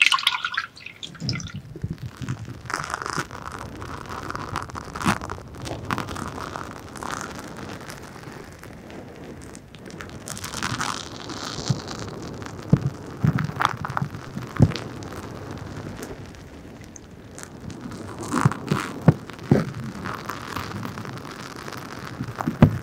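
Fingers rub and tap on soft covers over a microphone, very close.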